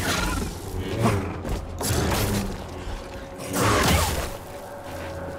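A lightsaber clashes with loud crackling strikes.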